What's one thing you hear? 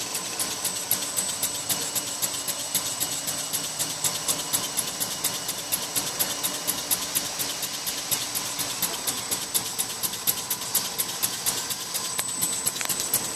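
A machine clatters steadily with rapid rhythmic clicks.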